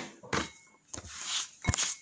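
A hand knocks against a metal bowl.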